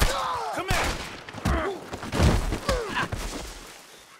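A fist punches a man with a heavy thud.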